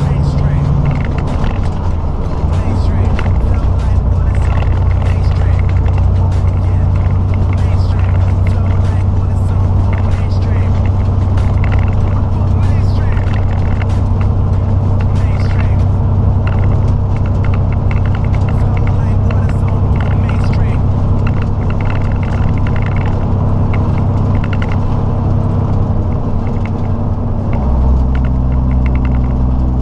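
The cab rattles and creaks as the truck drives.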